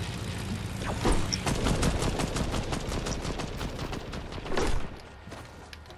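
Footsteps clatter quickly across a metal floor.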